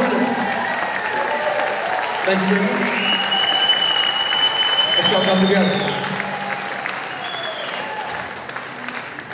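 A rock band plays live, heard in a large hall.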